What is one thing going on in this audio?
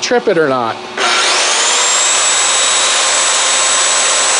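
A power tool starts up with a rising whine and then runs steadily.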